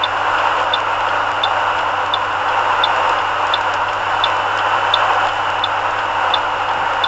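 Tyres roar steadily on a snowy road.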